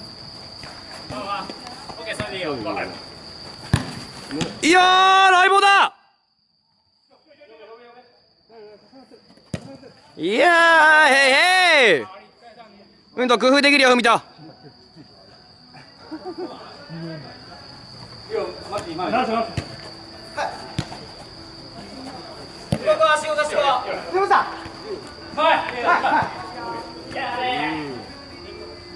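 Young players shout loudly to each other across an outdoor pitch.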